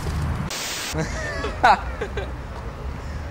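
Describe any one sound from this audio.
A young man calls out excitedly nearby.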